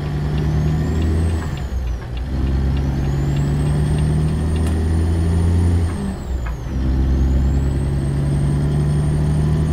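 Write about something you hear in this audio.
A heavy truck engine rumbles steadily, dipping briefly as the gears change.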